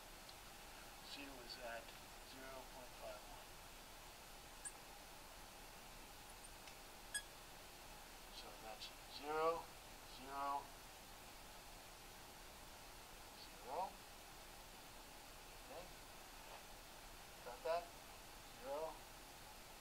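An elderly man speaks calmly in short phrases, close by.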